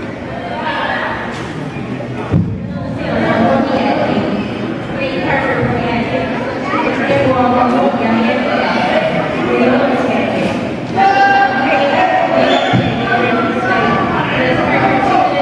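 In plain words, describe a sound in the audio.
Young players and spectators shout and call out in a large echoing hall.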